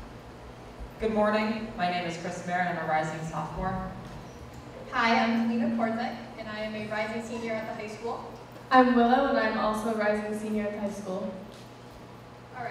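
A young woman reads out through a microphone in a large hall.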